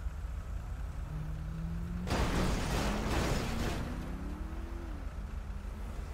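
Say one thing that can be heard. Another car speeds past with a revving engine.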